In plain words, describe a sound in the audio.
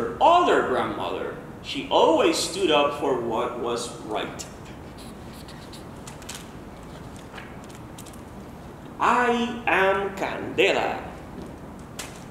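A man reads aloud with animation, close by.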